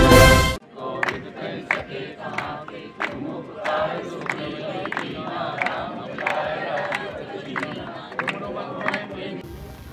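People clap their hands in a steady rhythm.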